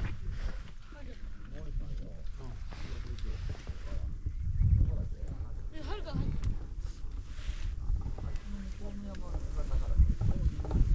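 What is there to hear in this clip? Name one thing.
Men and women talk quietly nearby.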